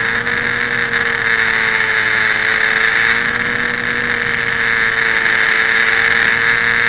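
A small model plane's electric motor whines steadily up close.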